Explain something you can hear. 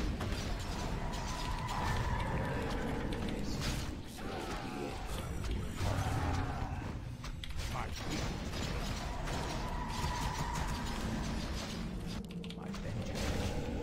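Spells and weapons crackle and clash in a game battle.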